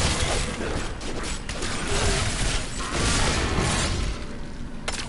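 Weapons slash and thud against monsters in a fast fight.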